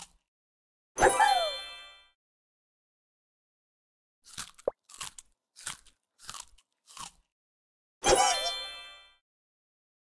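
A bright cheerful chime jingles and fades.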